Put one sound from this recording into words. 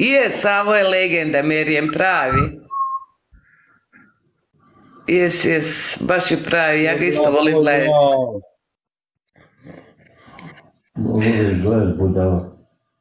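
A man speaks earnestly over an online call.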